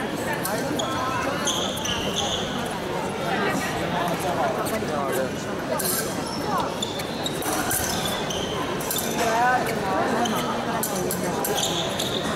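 Fencing blades clink and scrape against each other.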